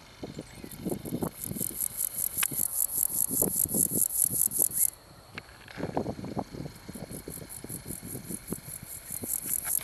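A snake slithers softly over loose gravel.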